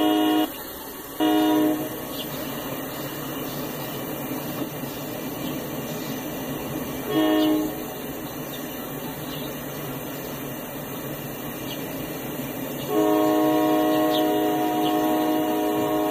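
Freight cars rumble and clatter along the tracks.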